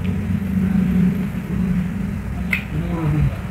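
A young man gnaws and tears meat from a bone with wet chewing sounds.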